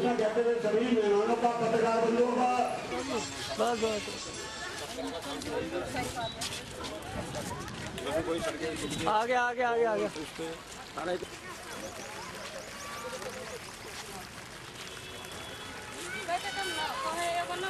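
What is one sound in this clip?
A crowd of men and women talk and murmur nearby.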